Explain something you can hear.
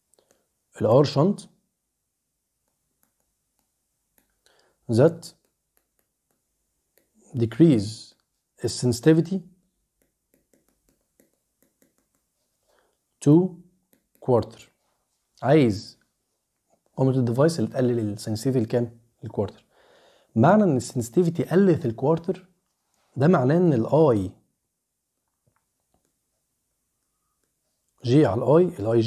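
A man speaks calmly in short bursts close to a microphone.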